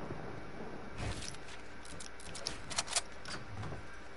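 Building pieces clack quickly into place.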